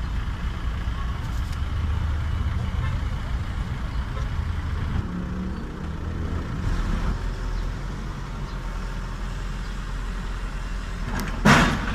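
A backhoe's diesel engine rumbles steadily nearby.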